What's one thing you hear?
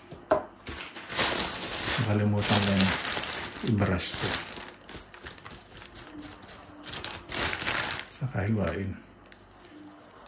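A plastic bag rustles.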